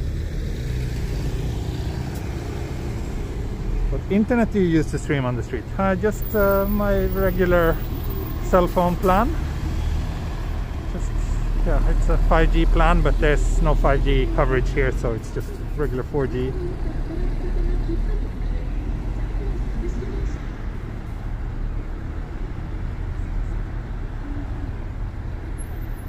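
Steady traffic hum fills the street.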